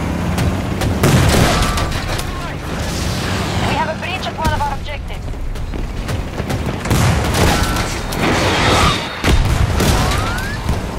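Explosions boom and crash nearby.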